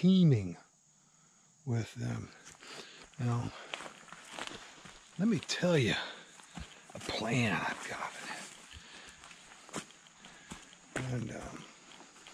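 A middle-aged man talks calmly, close up.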